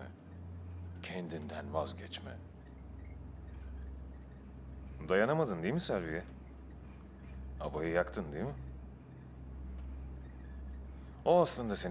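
A young man speaks in short, calm phrases nearby.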